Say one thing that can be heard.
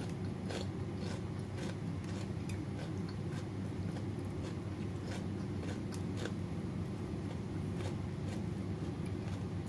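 Food squelches softly as a hand mixes rice on a metal plate.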